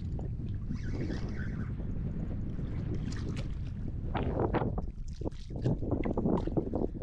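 Small waves lap and splash on the water.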